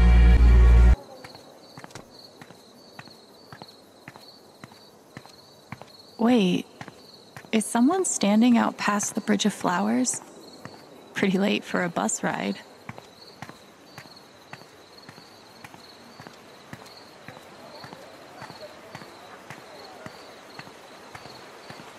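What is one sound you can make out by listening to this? Footsteps tap steadily on a hard walkway.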